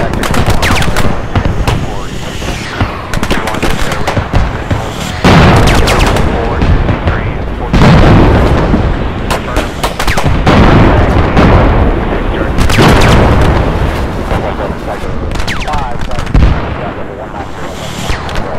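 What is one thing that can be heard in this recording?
Rapid cannon fire booms and rattles continuously.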